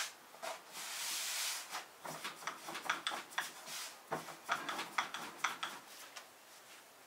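A knife chops quickly on a wooden board.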